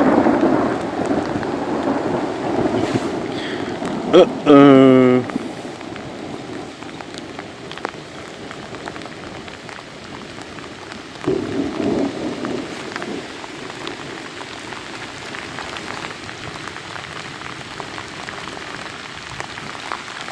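Rain patters steadily on the surface of water outdoors.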